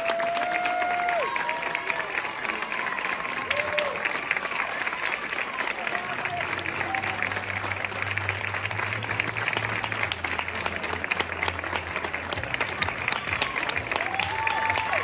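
A crowd of onlookers chatters outdoors.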